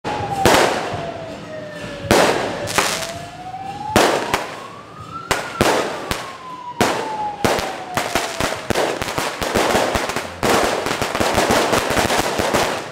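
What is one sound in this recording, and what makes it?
Firecrackers bang sharply outdoors, coming faster and denser toward the end.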